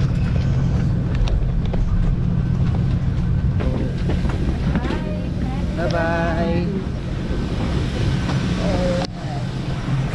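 A low steady hum fills an aircraft cabin.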